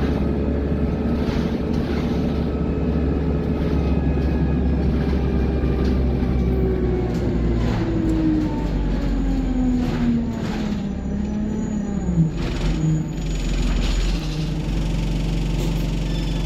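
A bus engine hums and drones steadily, with its pitch falling as it slows.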